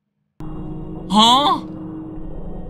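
A young man shouts in surprise.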